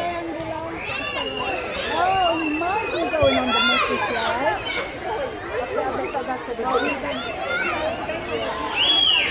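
A young child talks and calls out nearby, outdoors.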